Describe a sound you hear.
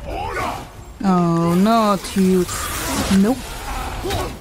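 A creature shrieks loudly.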